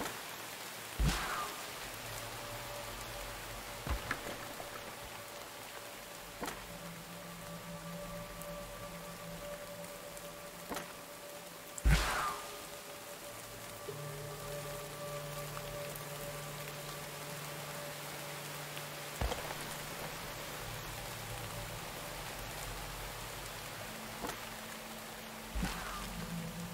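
Short, sharp clicks sound now and then.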